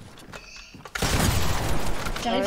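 Gunshots fire in loud, rapid bursts.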